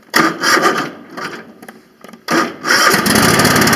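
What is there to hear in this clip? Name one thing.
A small engine cranks and sputters in short bursts.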